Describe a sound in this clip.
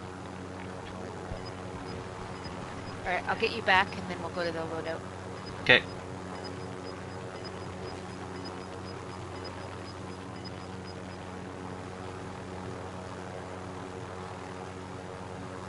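A helicopter's engine and rotor drone steadily.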